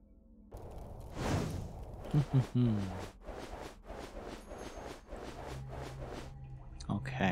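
A sword swishes in quick, repeated whooshes.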